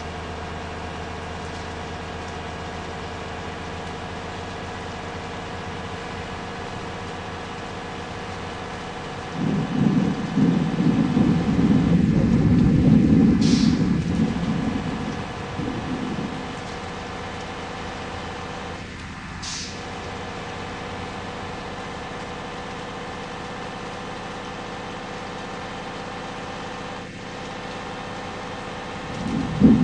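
A bus engine drones steadily at high speed.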